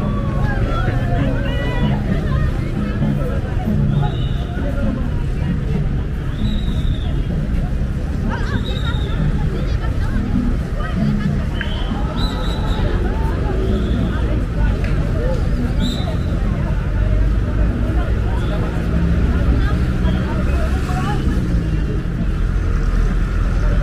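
A large outdoor crowd of men and women chatters and calls out all around.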